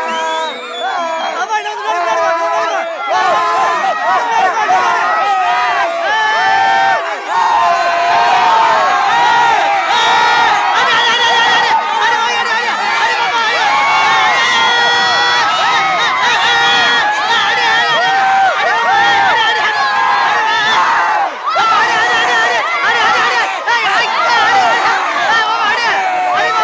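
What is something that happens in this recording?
A crowd of young men and boys shout and cheer outdoors.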